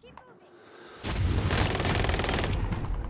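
Rapid gunfire bursts out loudly at close range.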